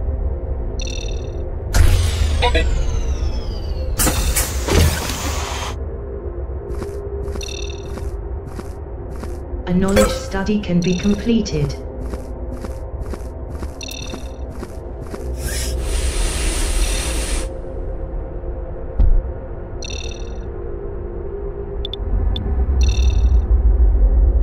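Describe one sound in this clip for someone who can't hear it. Short electronic beeps chime in quick bursts.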